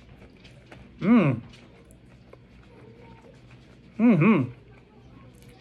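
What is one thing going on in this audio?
A middle-aged man hums or murmurs while chewing.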